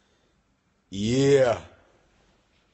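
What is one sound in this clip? A man gives a loud drawn-out exclamation.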